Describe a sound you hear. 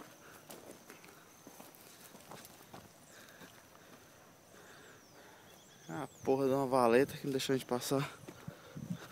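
Footsteps crunch on a dirt path through grass.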